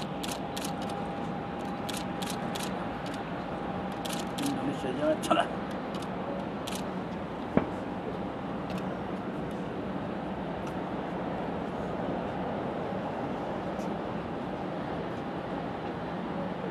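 A jet airliner's engines hum steadily as it taxis nearby.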